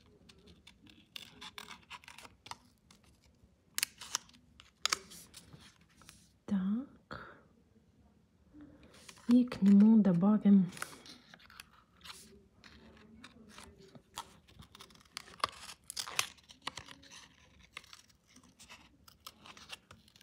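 Small scissors snip through a thin sheet of paper, close by.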